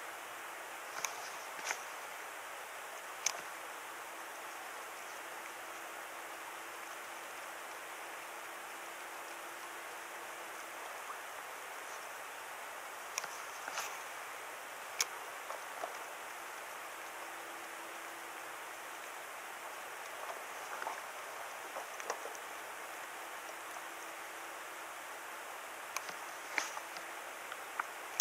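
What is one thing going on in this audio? A fishing reel clicks and whirs in short bursts.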